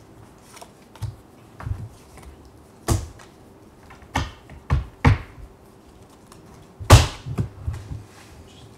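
Small objects knock on a table.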